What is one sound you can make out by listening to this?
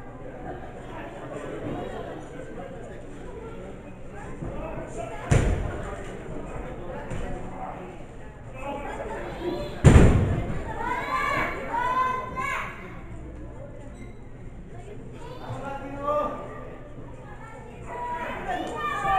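A crowd of spectators cheers and shouts nearby.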